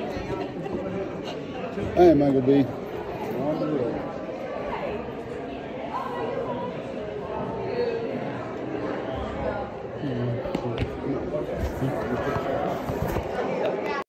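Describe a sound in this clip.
Several men and women talk at once in a large echoing hall.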